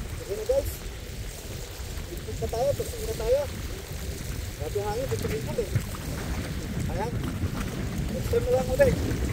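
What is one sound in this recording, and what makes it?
Strong wind buffets the microphone outdoors.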